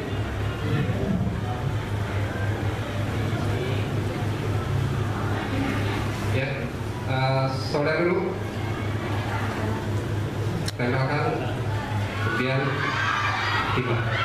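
A man speaks calmly and explains through a microphone.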